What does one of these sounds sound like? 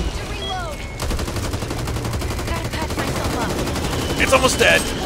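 A rifle fires repeated gunshots.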